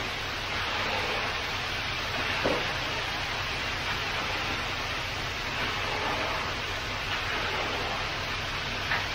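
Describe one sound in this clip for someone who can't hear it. A concrete pump hose pours wet concrete with a steady rushing noise.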